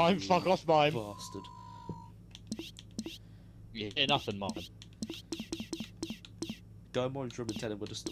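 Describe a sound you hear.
Short electronic menu clicks sound several times.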